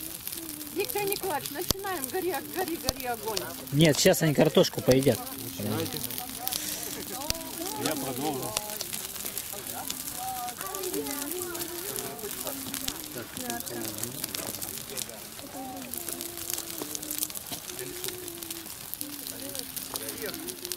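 Men and women talk calmly nearby outdoors.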